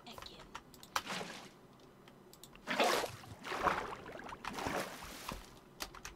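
Water splashes and gushes from a bucket.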